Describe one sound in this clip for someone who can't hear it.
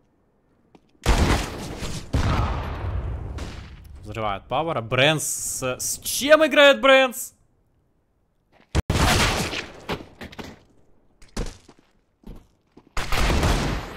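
Gunshots crack loudly in quick bursts.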